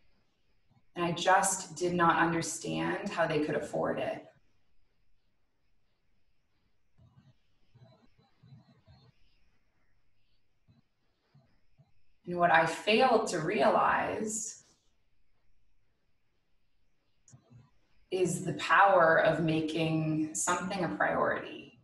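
A young woman speaks calmly and softly into a nearby microphone, with pauses.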